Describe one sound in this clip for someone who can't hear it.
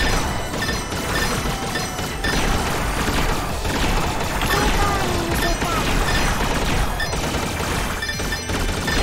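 Rapid shots fire over and over in a video game.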